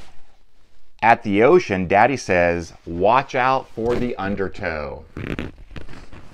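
A man reads aloud with animation, close to a microphone.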